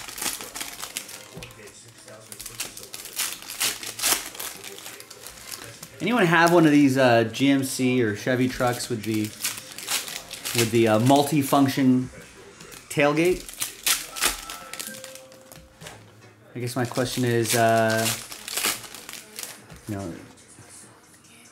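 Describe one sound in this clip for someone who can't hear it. Foil card wrappers crinkle and tear as hands open them.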